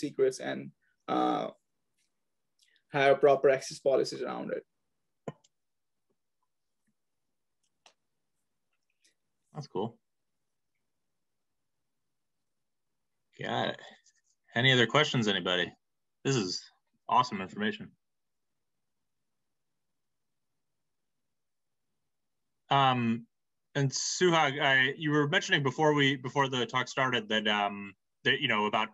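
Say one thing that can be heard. A young man speaks calmly over an online call, with pauses.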